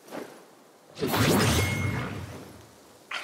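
Branches snap and crash in a heavy impact.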